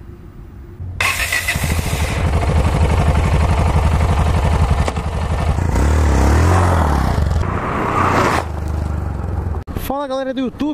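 A motorcycle engine revs hard and roars.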